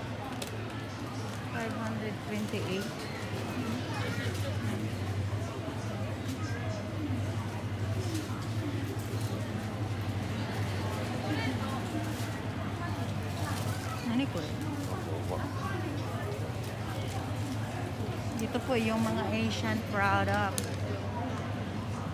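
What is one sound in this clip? Shoppers' voices murmur and chatter nearby in a busy indoor space.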